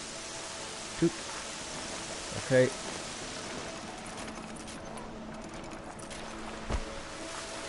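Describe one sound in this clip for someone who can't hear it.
Steady rain and wind hiss outdoors.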